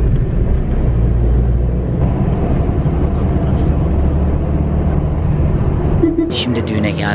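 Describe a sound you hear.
A car engine hums steadily with road rumble.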